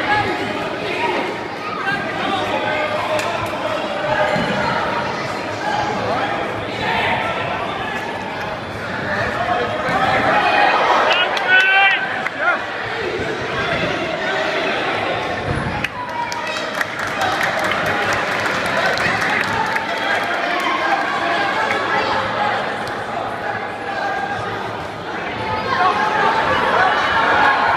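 Spectators cheer and shout.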